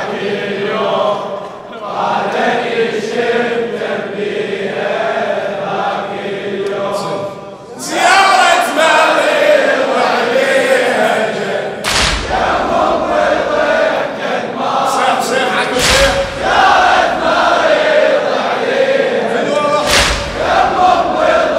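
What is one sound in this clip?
A man chants loudly through a microphone in a large echoing hall.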